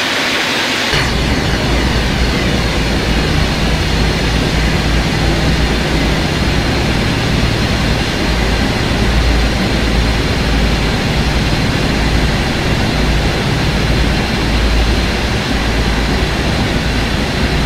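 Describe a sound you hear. A train engine rumbles deep and steady, heard from inside the cab.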